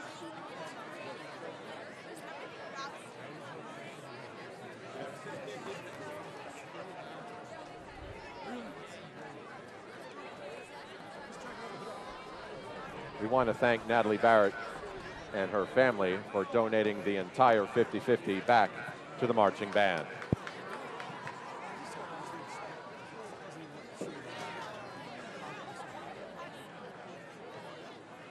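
A crowd murmurs and chatters outdoors throughout.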